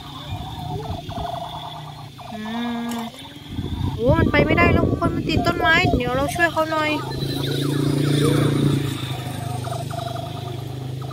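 A toy's small motor whirs and clicks steadily as the toy crawls.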